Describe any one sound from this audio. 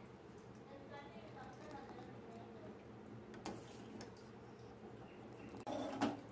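A ladle scoops and pours thick liquid back into a pot.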